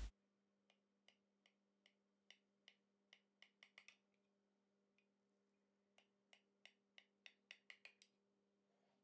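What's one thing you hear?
A knife softly scrapes through a cake in a glass dish.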